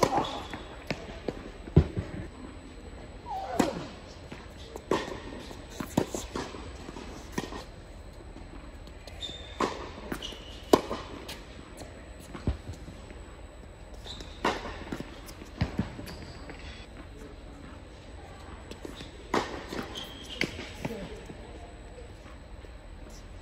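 Tennis shoes squeak sharply on a hard court.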